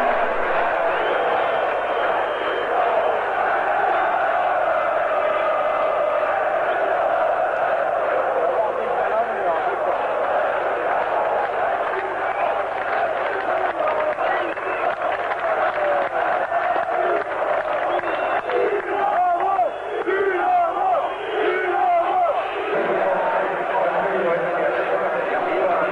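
A large crowd chants and shouts in the distance outdoors.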